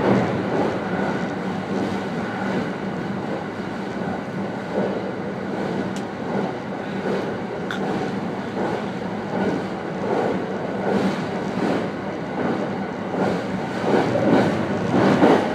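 An electric train runs at speed over a steel truss bridge, heard from inside the cab.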